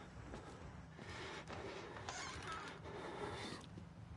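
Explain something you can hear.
A stall door swings open.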